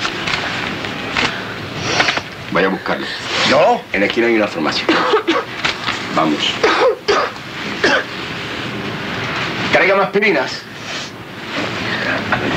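A man speaks in a firm voice.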